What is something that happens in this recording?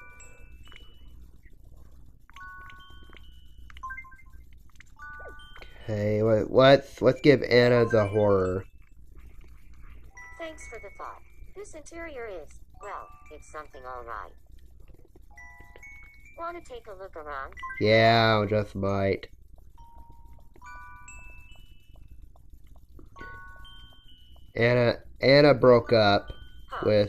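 A handheld game console plays short electronic beeps.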